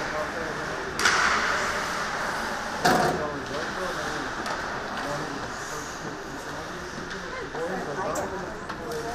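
Hockey sticks clack sharply against the puck in a large echoing rink.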